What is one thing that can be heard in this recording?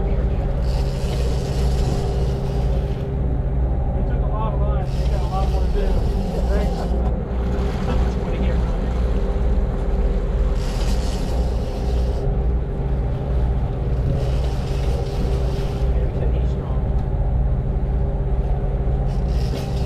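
A boat's engine rumbles steadily.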